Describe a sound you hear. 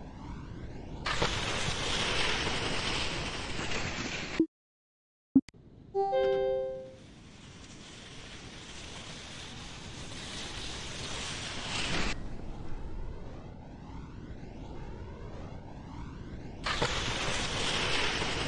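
A crowd cheers loudly as a ski jumper lands.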